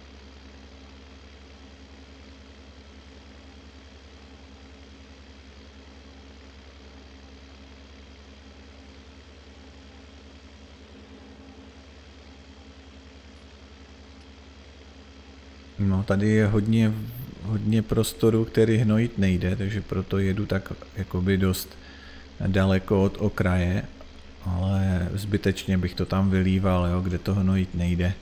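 A tractor engine hums steadily at a low idle.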